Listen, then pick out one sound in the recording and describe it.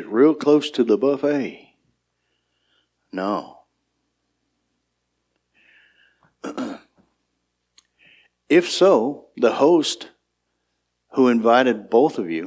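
An older man speaks calmly into a microphone, pausing between phrases.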